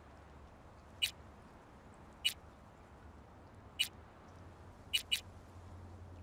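A game menu gives short bright blips as the selection moves.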